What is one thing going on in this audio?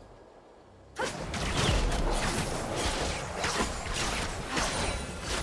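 Magical attacks zap and crackle in a fast fight.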